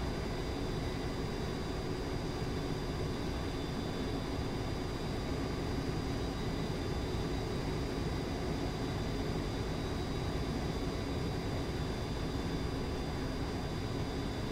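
Wind rushes steadily past a cockpit canopy.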